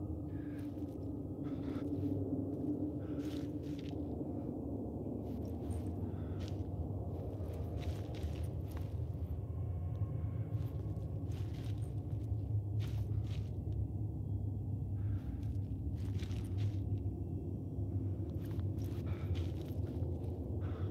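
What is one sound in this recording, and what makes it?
Footsteps walk slowly over a gritty floor.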